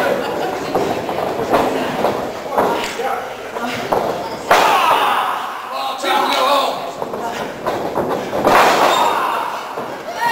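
Wrestlers' bodies thud onto the ring mat.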